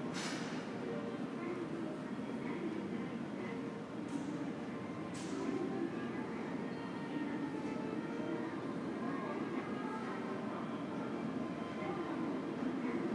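Distant voices murmur faintly in a large echoing hall.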